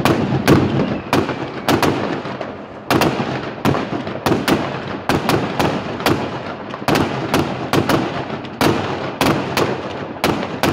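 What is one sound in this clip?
Fireworks bang and crackle nearby, echoing off buildings.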